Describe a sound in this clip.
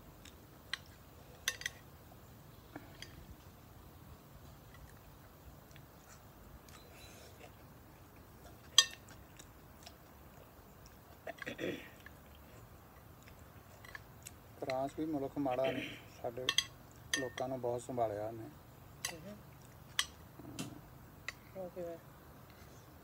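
Forks clink and scrape against plates.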